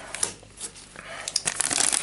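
Cards slide and tap against each other.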